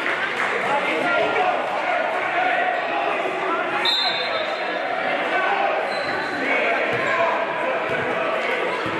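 Voices of players and spectators murmur and call out in an echoing gym.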